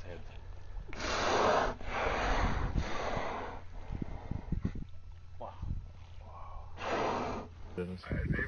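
Killer whales blow loudly through their blowholes as they surface.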